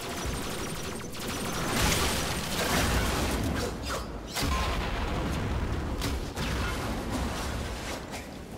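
Gunfire and blasts crackle in a game.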